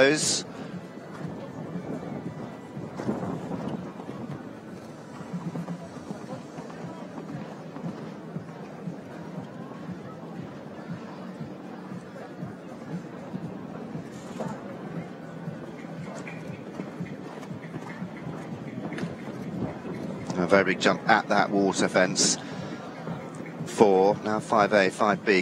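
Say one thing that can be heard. A horse's hooves thud on soft sand.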